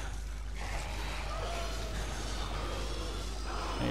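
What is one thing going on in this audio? Blades strike enemies with sharp hits.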